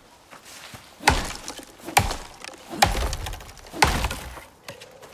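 An axe splits a fallen log with heavy thuds.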